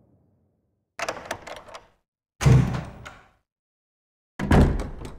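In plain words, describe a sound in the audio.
A heavy wooden door creaks and thuds open.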